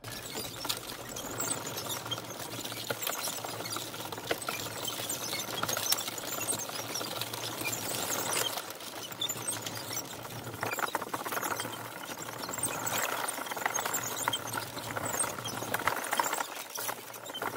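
A motor whirs steadily.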